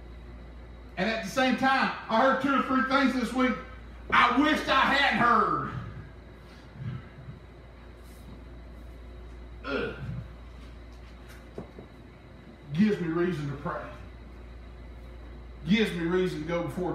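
A middle-aged man preaches with animation through a headset microphone, in pauses.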